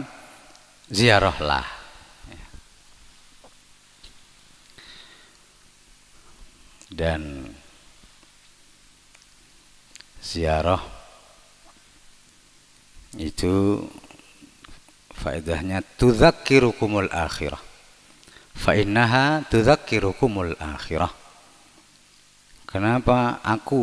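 A man chants in bursts through a loudspeaker, echoing in an open space.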